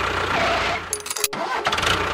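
A small toy motor whirs as a toy tractor drives.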